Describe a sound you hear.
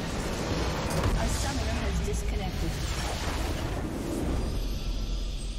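A large game structure explodes with a deep boom.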